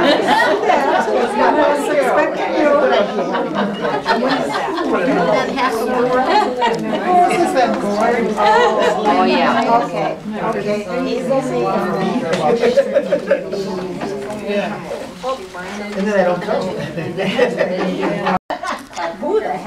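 Several elderly women chat and talk over one another nearby in a room.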